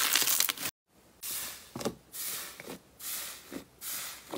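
Thick slime pops and squelches as hands press into it.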